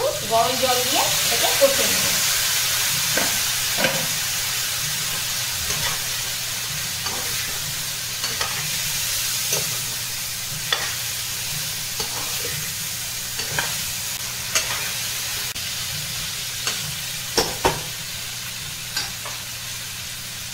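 A metal spatula scrapes and knocks against a pan.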